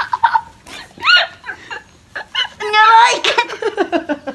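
A girl laughs and shrieks playfully close by.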